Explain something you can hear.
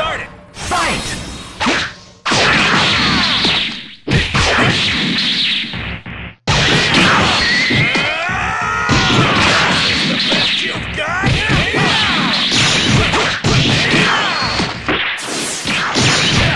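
Punches and kicks land with sharp smacking hits.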